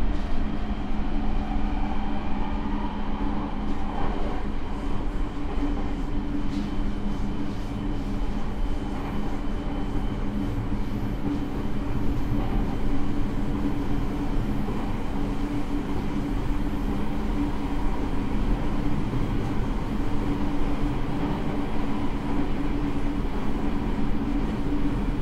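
A train rumbles and hums steadily along the tracks, heard from inside a carriage.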